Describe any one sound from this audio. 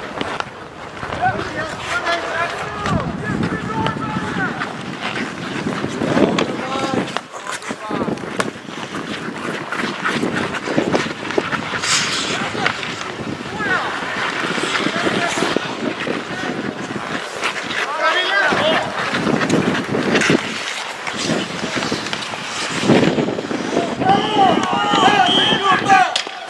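Skates scrape and hiss across ice outdoors.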